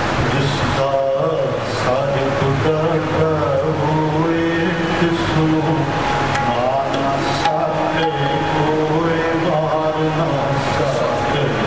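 Elderly men sing together through microphones.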